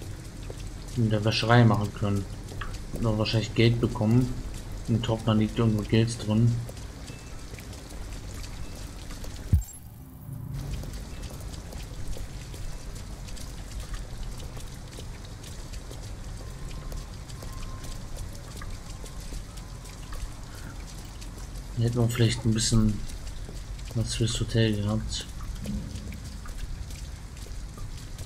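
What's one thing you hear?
Footsteps splash softly on wet pavement.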